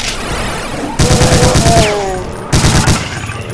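Monsters growl and snarl.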